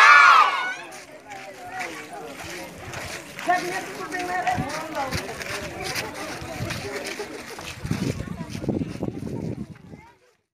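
Many footsteps shuffle on a dirt road.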